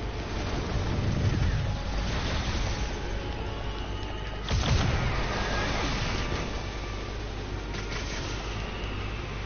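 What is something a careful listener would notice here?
Energy beams blast and crackle in loud bursts.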